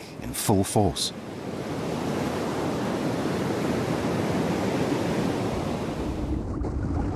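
Large waves crash and roar against the shore.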